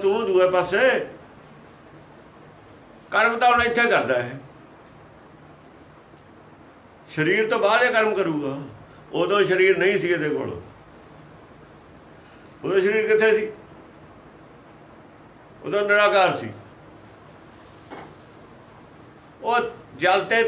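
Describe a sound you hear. An elderly man speaks calmly and slowly, in short phrases with pauses.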